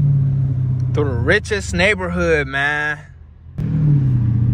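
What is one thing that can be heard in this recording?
A car engine revs up sharply and then cuts off for a moment during a gear change.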